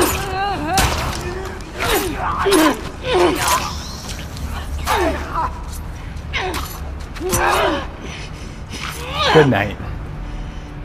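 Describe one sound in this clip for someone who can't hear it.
Heavy blows thud during a scuffle.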